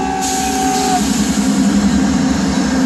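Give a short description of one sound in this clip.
A train rumbles past close by.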